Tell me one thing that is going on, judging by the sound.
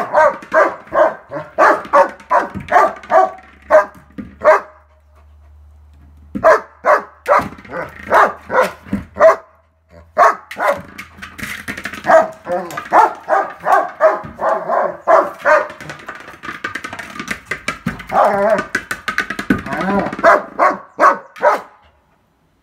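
A dog barks repeatedly nearby in quick bursts.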